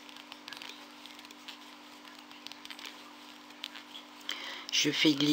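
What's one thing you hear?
Yarn rustles and rubs softly between fingers.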